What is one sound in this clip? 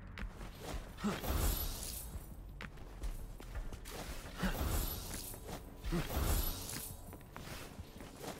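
Game music and sound effects play.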